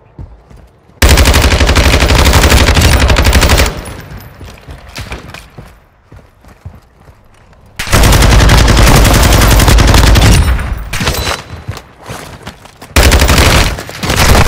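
An automatic rifle fires rapid bursts of loud gunshots.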